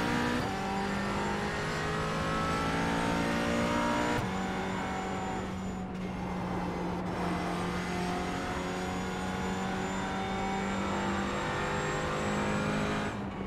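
A racing car engine roars loudly, its pitch rising and falling as gears shift.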